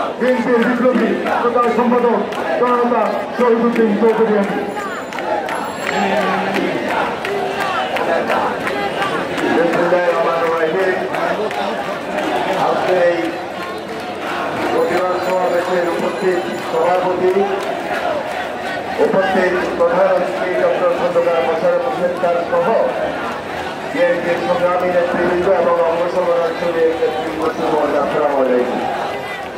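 A large crowd of men chant slogans loudly in unison outdoors.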